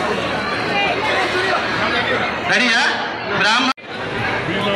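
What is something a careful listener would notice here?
A crowd chatters noisily.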